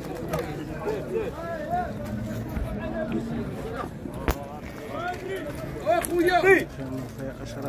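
Several men talk and call out outdoors nearby.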